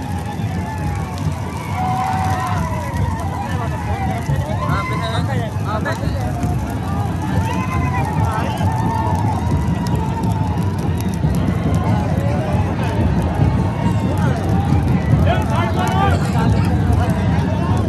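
Men nearby shout and cheer loudly.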